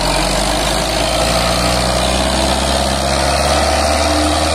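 A tractor engine revs up hard as it pulls a heavy load.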